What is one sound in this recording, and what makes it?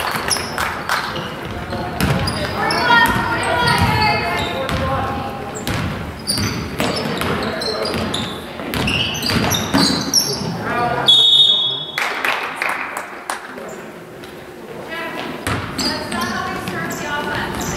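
Spectators nearby talk and call out.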